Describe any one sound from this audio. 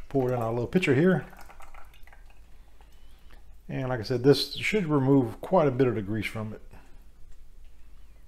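Liquid pours in a thin stream into a glass jug.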